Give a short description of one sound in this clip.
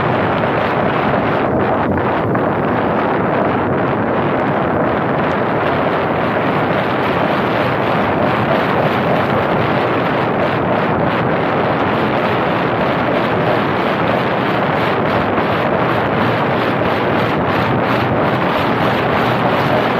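Wind rushes over a microphone on the roof of a moving car.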